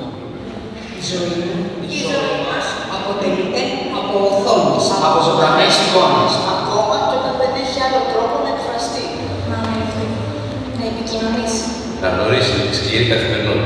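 A man speaks through loudspeakers in a large hall.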